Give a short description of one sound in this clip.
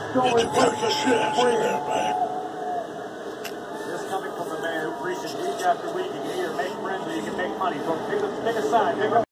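A middle-aged man speaks softly, close by.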